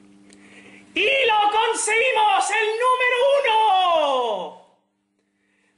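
A video game plays a short victory fanfare.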